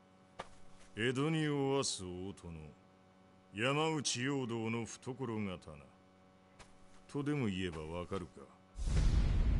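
A middle-aged man speaks calmly and deliberately, close by.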